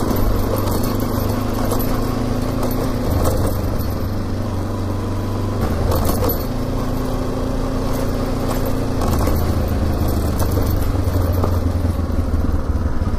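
Tyres crunch and rumble over a rough dirt track.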